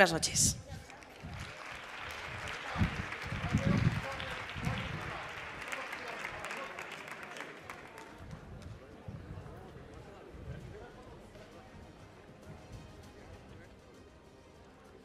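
An audience applauds and the clapping slowly fades.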